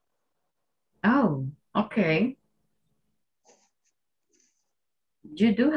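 A woman speaks clearly over an online call, with pauses.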